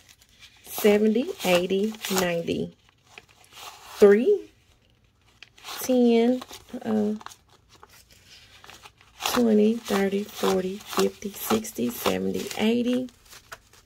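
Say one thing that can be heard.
Paper banknotes rustle and flick as they are counted by hand.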